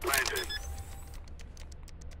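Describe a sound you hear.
Keypad buttons click rapidly.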